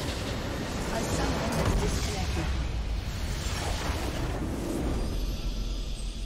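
A structure explodes with a loud burst.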